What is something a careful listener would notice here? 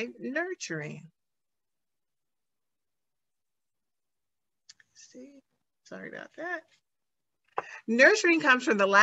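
A woman speaks calmly through an online call, pausing between phrases.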